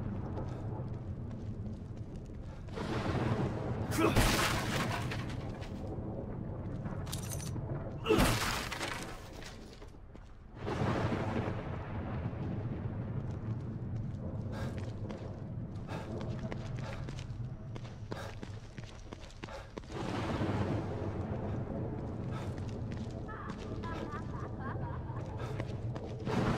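Footsteps patter on wet pavement.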